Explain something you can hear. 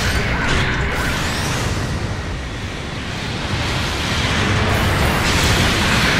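A robot's jet thrusters roar steadily.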